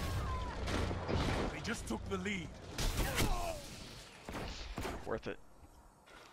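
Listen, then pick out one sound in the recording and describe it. A video game pistol fires in sharp shots.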